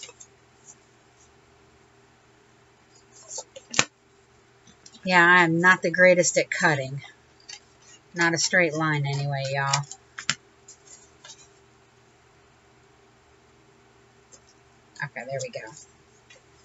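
Hands rub and smooth down paper.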